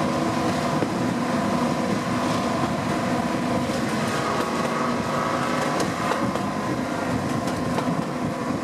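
A diesel locomotive engine drones steadily close by.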